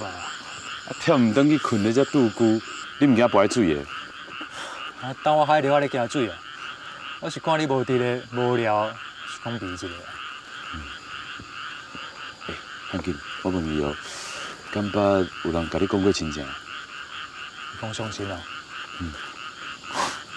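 A young man speaks calmly nearby, asking questions.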